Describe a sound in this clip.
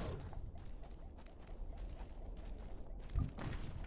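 A large creature's feet thud as a game character rides it.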